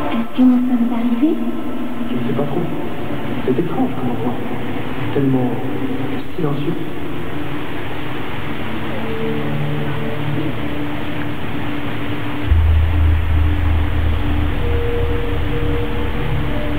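Water jets from a fountain spray and splash.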